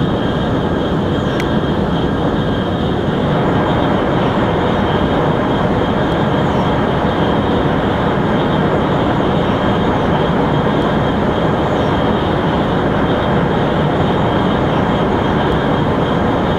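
A high-speed train rumbles and roars steadily along the track.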